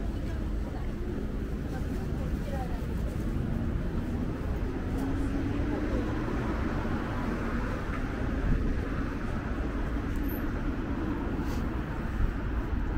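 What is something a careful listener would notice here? City traffic rumbles steadily along a nearby street.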